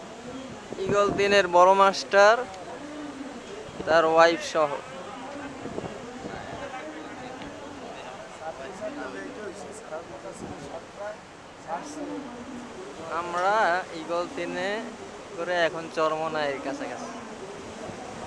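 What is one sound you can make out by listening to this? A young man talks loudly on a phone close by.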